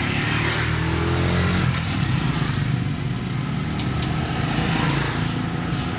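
A motor scooter passes close by.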